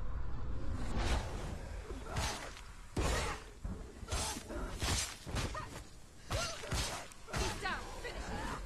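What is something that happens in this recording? Sword blades swish and strike in quick bursts.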